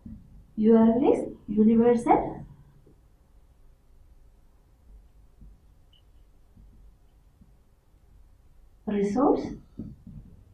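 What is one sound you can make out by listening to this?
A young woman speaks calmly and clearly, close by.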